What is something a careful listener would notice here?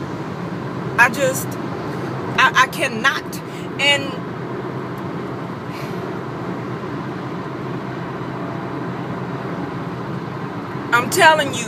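A woman speaks close to the microphone in short, animated bursts.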